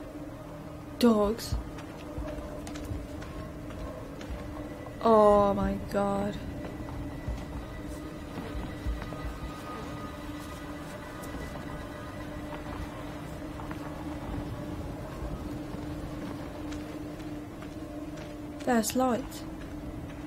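A young woman speaks briefly and quietly into a close microphone.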